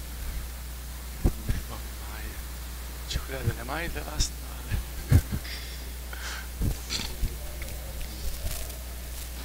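Footsteps and shuffling knock on a wooden floor in a large echoing hall.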